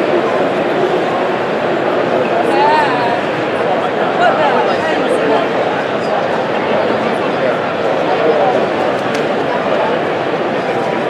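A crowd of many people chatters in a large echoing hall.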